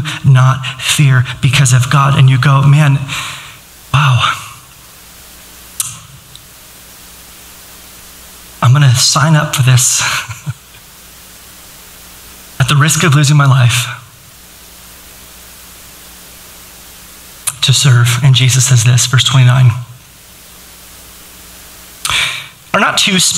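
A man speaks calmly into a microphone in a large room, with pauses between phrases.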